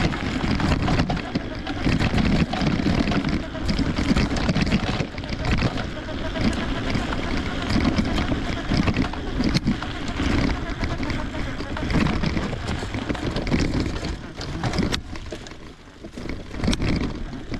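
Tyres crunch and rattle over a rough dirt track.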